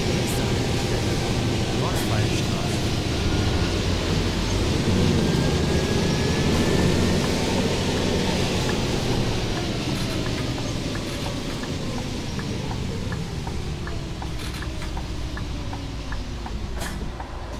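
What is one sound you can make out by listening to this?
A bus engine rumbles and winds down.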